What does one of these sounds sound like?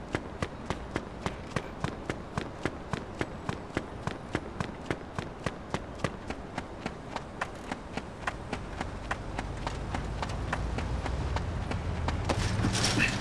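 Quick footsteps run across gravel and dirt.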